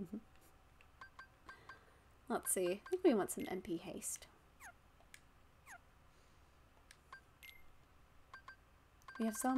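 Short soft blips tick as a game menu cursor moves between choices.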